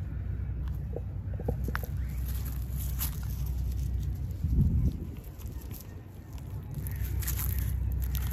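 Footsteps crunch on dry leaves and grass.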